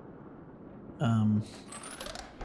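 A mechanical puzzle box clicks and chimes as it is solved.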